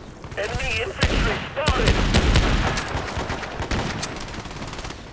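Gunshots crack sharply in quick bursts.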